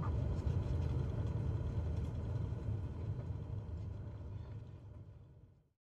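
A small propeller plane's engine drones low and steadily, then slowly fades away.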